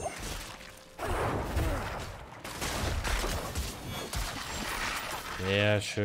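A spell blasts with a loud burst.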